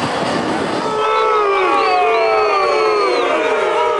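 A crowd of fans sings and chants together.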